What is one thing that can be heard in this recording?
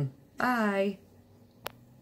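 A woman speaks a few words briefly, close by.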